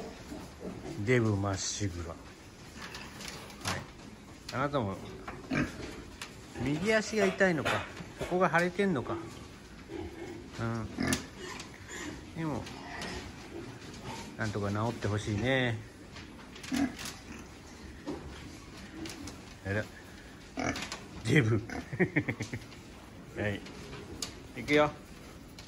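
Pigs grunt and squeal close by.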